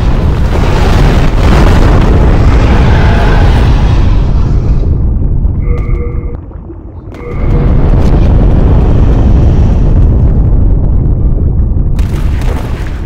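A dragon's fire roars loudly.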